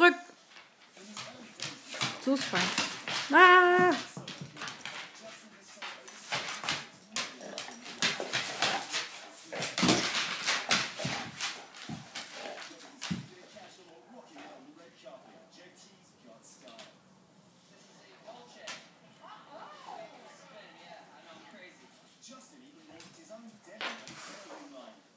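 Dogs growl and snarl playfully as they wrestle.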